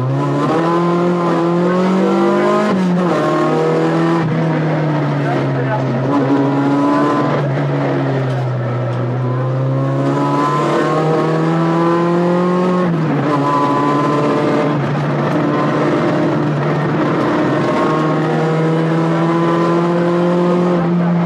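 A rally car engine revs hard at full throttle, heard from inside the cabin.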